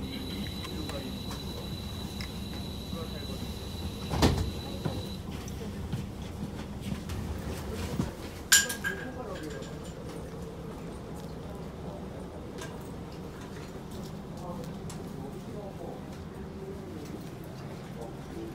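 A train engine idles with a low steady rumble.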